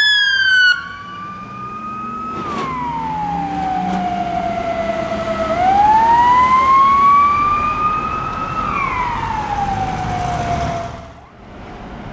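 A fire service van's siren wails slowly up and down as it passes by and then stops.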